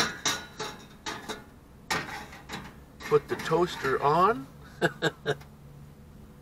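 A metal rack clinks on a gas stove.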